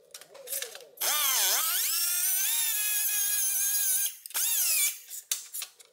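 A small rotary tool whines loudly against metal, dipping in pitch and then rising.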